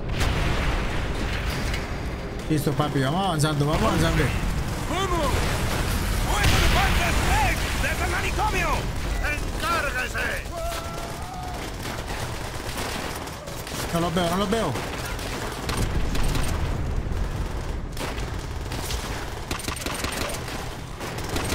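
Rifle shots crack and boom amid battle noise.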